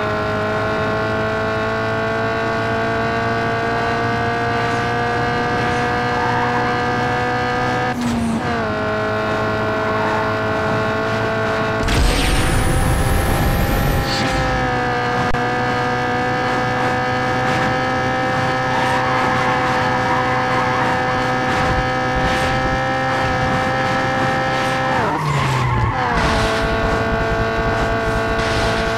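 A racing car engine roars at high speed, with a steady high whine.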